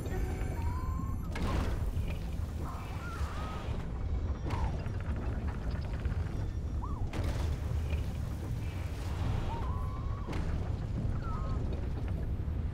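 A low wind rumbles steadily.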